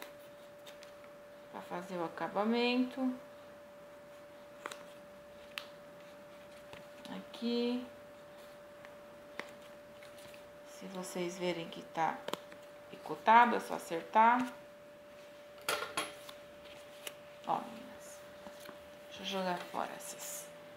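Stiff paper rustles as it is handled.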